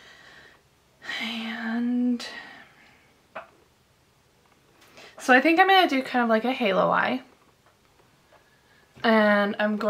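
A young woman sings close to a microphone, in long held notes.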